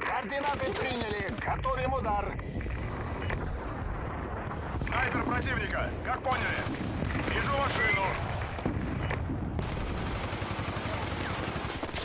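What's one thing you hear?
Rifle shots crack in quick bursts.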